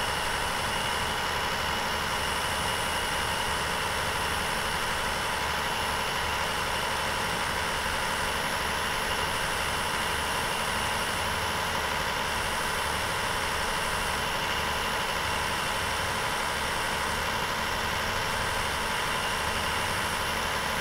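A truck engine hums steadily as it drives along a highway.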